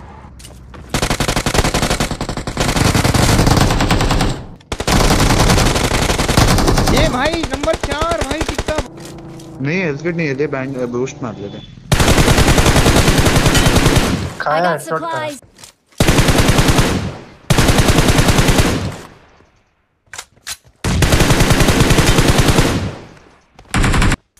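Automatic gunfire rattles in rapid, loud bursts.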